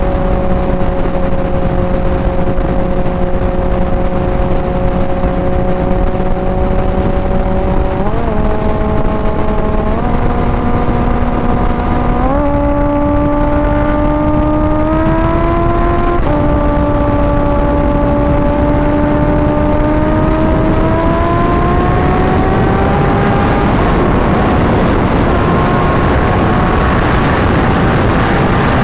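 A motorcycle engine roars, shifting up through the gears as it speeds up.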